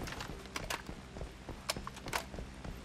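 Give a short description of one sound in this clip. A rifle magazine clicks and rattles as it is changed.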